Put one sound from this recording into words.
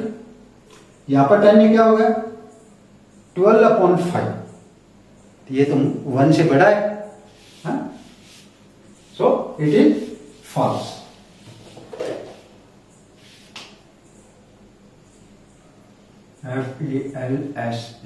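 An older man speaks calmly and clearly, close to a microphone.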